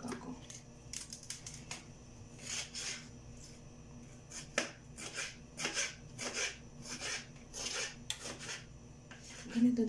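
A knife chops on a cutting board with repeated thuds.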